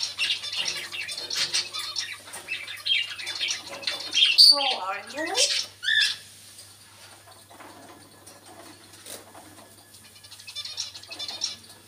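A parrot chirps, whistles and mimics sounds up close.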